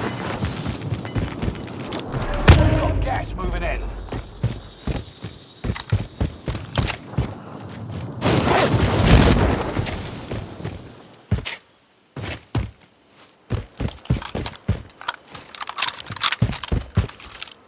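A rifle rattles and clicks as it is handled.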